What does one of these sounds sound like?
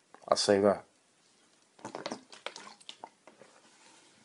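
A man gulps water from a plastic bottle.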